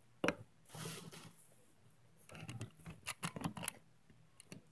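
Stiff trading cards slide and rustle against each other in close hands.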